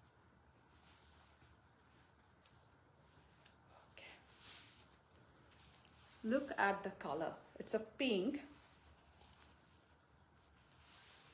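Silk fabric rustles as it is unfolded.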